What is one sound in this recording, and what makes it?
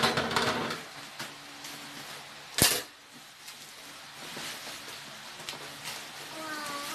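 Plastic wrapping crinkles and rustles as it is torn open.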